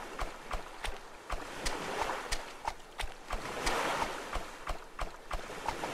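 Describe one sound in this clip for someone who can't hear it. Water splashes and sloshes as someone wades through shallow surf.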